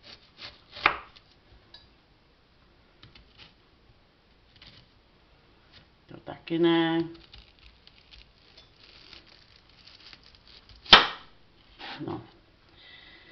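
A knife slices through an onion and taps on a wooden board.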